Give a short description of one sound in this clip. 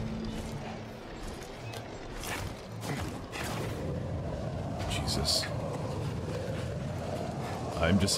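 A climber's hands grab and scrape against rock and metal.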